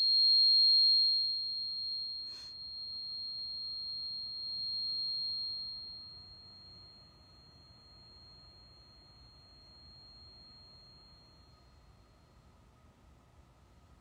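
A tuning fork rings with a high, steady tone that slowly fades.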